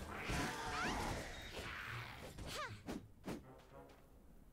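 Game combat effects burst and crackle loudly.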